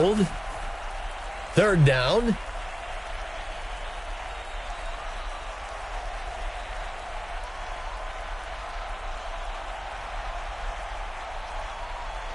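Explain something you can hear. A stadium crowd murmurs steadily in the distance.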